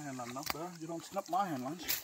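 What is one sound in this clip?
A fish flaps on wet mud.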